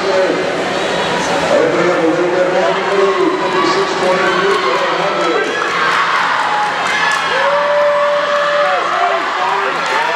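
Swimmers splash through the water in a large echoing hall.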